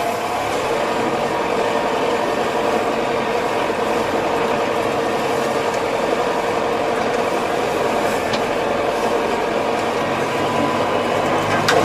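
A tiller churns through soil with a rattling clatter.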